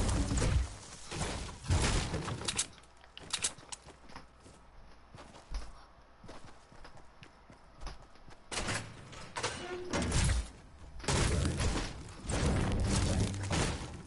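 A pickaxe strikes wooden crates with sharp knocks.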